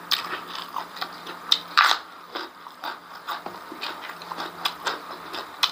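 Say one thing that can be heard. A man chews food with wet smacking close to a microphone.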